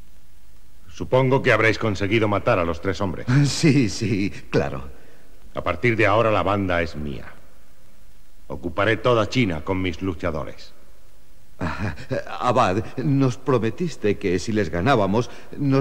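A man speaks firmly and clearly, close by.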